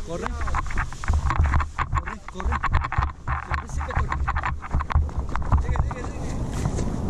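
Footsteps thud quickly on grass as people run.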